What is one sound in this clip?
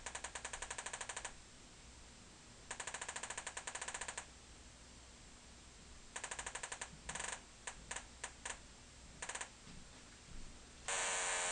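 A metal detector beeps in short bursts as a metal object is waved near it.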